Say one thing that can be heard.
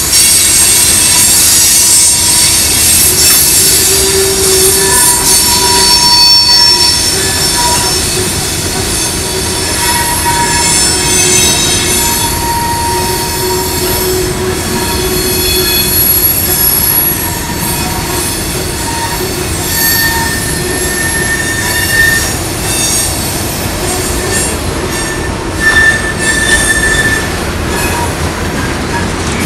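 Train wheels squeal and screech on the curving track.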